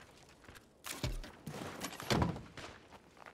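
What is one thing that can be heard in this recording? A car trunk lid opens with a clunk.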